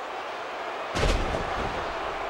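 A body slams down hard onto a wrestling ring mat with a loud thud.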